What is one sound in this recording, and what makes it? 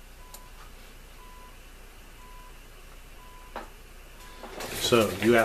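A shortwave time signal beeps once a second through a radio receiver.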